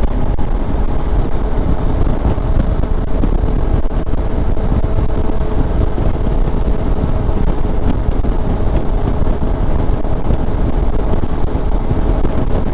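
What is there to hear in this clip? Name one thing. Wind roars steadily against a microphone on a moving motorcycle.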